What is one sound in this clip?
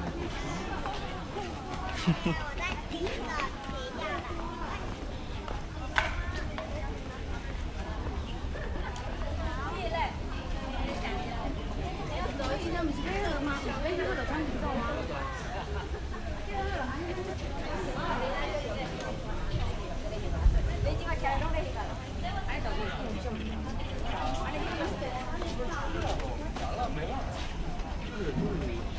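A crowd of adults and children chatters nearby outdoors.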